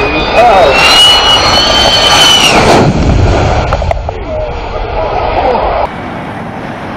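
A jet roars loudly as it flies low overhead.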